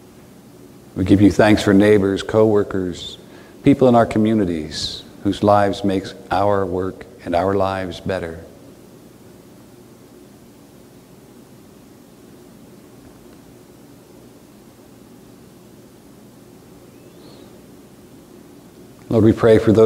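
An older man speaks slowly and calmly in a quiet room.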